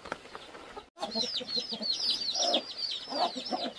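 Chicks cheep rapidly nearby.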